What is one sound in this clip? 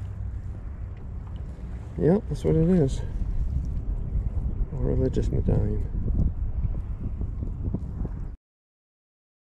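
Water laps gently nearby.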